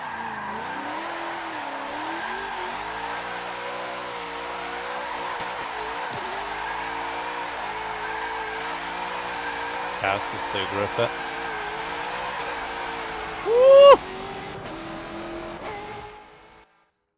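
A racing car engine roars and revs steadily up and down.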